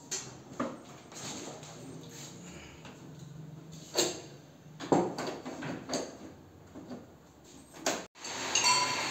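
Plastic parts click and rattle as wires are pulled.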